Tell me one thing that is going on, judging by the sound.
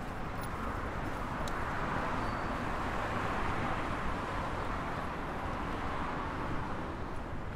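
A car passes close by with a rushing swell.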